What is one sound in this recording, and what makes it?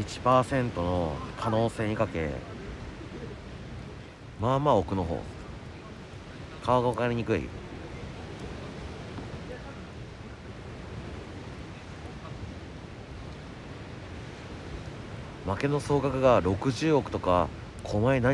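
A small wood fire crackles.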